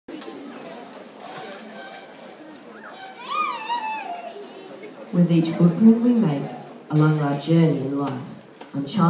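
An audience murmurs and chatters.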